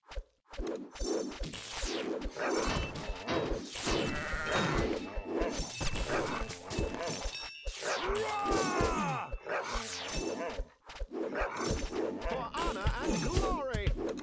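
Weapons clash and clank in a fight.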